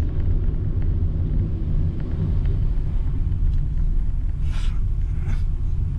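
Tyres rumble on asphalt.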